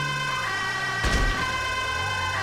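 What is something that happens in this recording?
A van thuds into an animal on the road.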